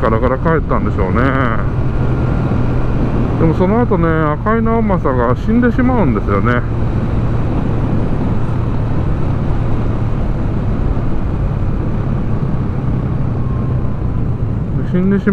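A small motorcycle engine hums steadily while riding.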